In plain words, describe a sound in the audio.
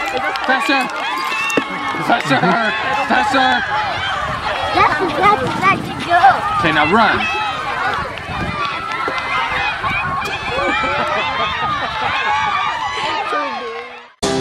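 A crowd of young children shout and chatter outdoors.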